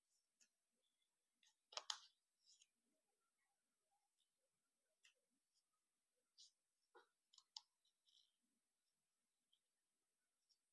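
Stiff paper crinkles and rustles as it is folded by hand.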